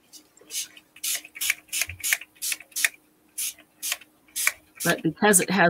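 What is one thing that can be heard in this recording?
A spray bottle hisses in short, quick bursts.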